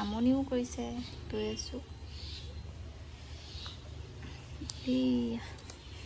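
A young woman talks softly and playfully close by.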